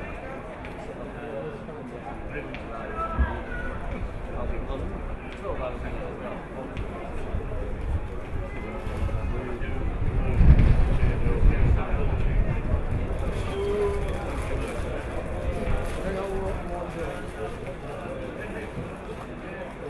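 Men talk and call out faintly in the distance.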